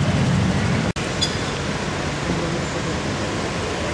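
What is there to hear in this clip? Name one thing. Men talk outdoors nearby.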